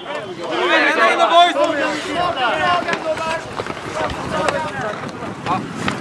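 Young men shout and cheer together close by.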